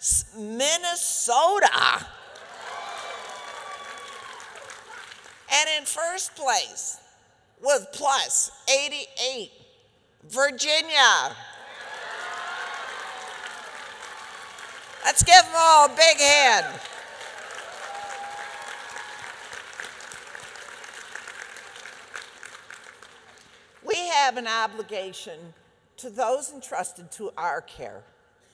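A middle-aged woman speaks with animation through a microphone, pausing often.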